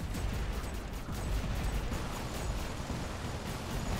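Robot guns fire in rapid bursts.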